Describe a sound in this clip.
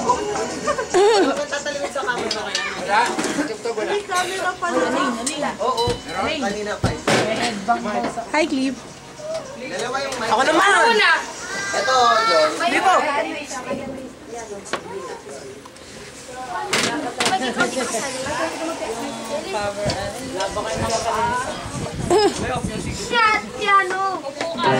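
Young people talk and laugh loudly close by.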